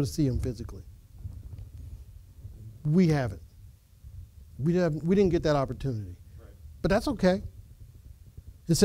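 An elderly man preaches with animation, heard through a microphone.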